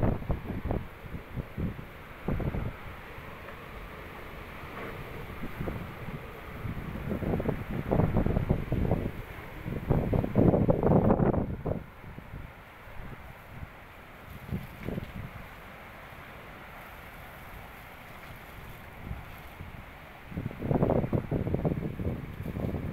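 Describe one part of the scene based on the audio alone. Strong wind roars in loud, buffeting gusts outdoors.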